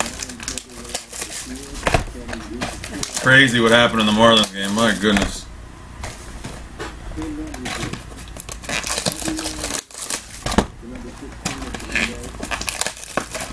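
Card packs rustle and crinkle in a man's hands.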